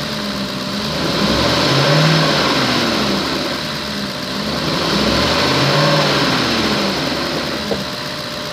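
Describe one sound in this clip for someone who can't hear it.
A diesel engine revs up and falls back twice.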